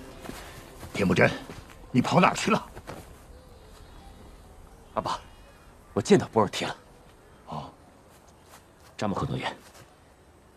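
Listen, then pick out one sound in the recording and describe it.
A young man speaks with emotion, close by.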